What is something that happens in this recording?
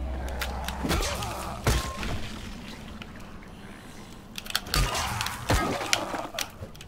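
A weapon strikes a zombie with heavy thuds.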